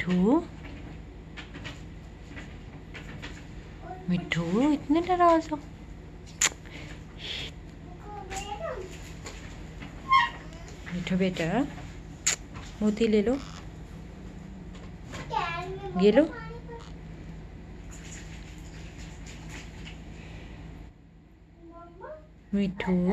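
A parrot chatters and squawks close by in short bursts.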